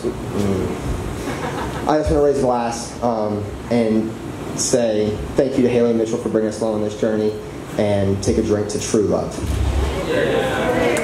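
A young man speaks with animation into a microphone over loudspeakers.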